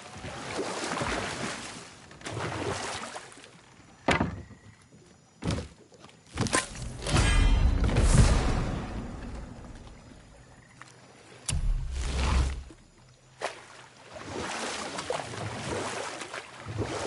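A wooden rowing boat glides through water.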